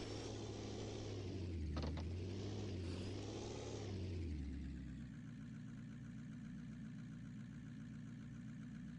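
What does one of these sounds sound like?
An off-road engine rumbles loudly, then drops to a low idle.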